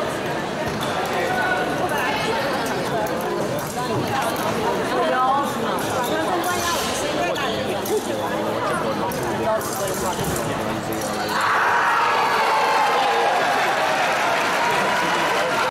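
A crowd of spectators murmurs and chatters in a large echoing hall.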